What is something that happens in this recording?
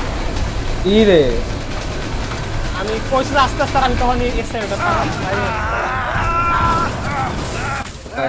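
A man shouts urgently.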